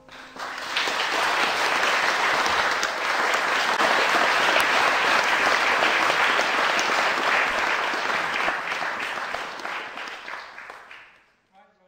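An audience applauds loudly in an echoing hall, then the clapping fades away.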